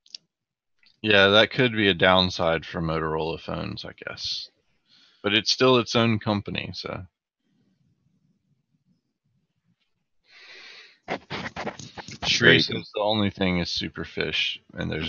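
A young man talks with animation through a microphone on an online call.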